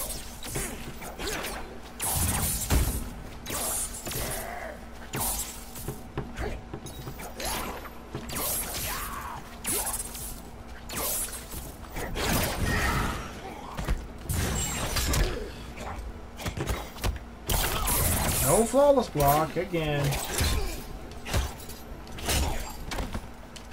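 Heavy punches and kicks land with sharp thuds and cracks.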